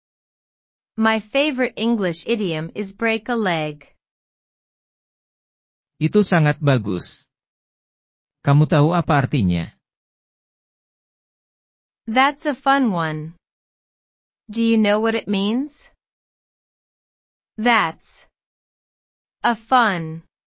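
A young woman speaks calmly and clearly, close up.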